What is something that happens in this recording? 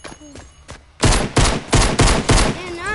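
Rapid gunshots fire at close range.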